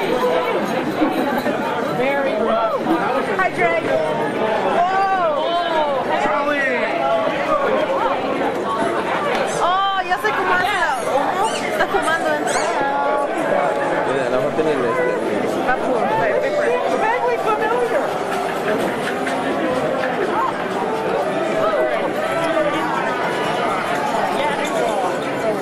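A large crowd chatters and cheers loudly in an echoing hall.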